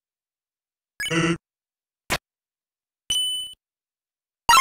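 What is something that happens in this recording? Short electronic game sound effects blip and chime.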